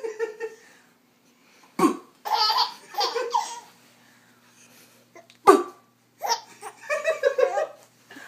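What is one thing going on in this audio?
A man talks playfully to a baby close by.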